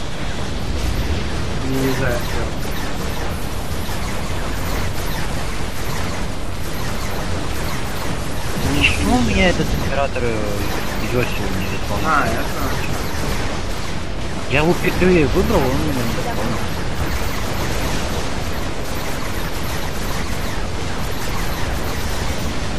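Explosions and gunfire rumble in a constant battle.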